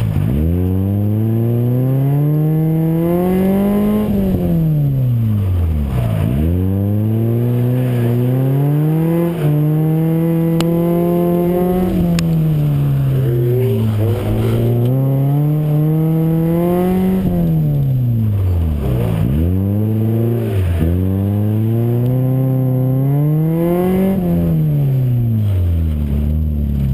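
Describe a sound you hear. A car engine revs hard, rising and falling again and again.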